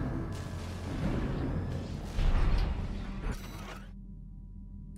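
Rumbling blasts and roaring thrusters sound from a video game.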